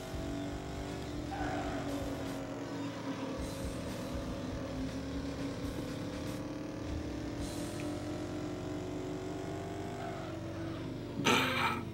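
A car engine revs high and steady, its pitch rising and falling as it changes speed.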